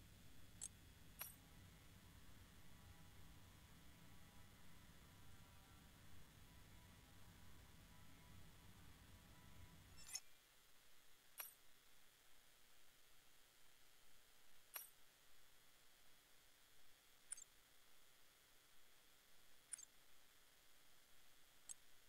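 Menu clicks sound as options are selected.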